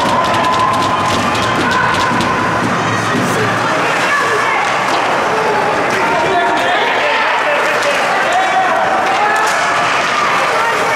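Skates scrape and carve across ice.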